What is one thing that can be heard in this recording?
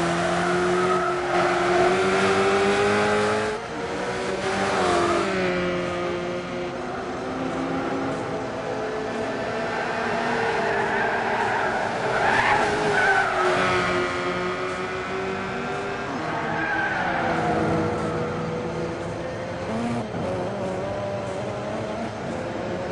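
A racing car engine roars steadily, rising and dropping in pitch as it speeds up and shifts gears.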